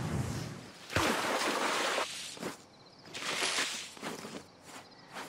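A fiery electric blast bursts with a loud crackling roar.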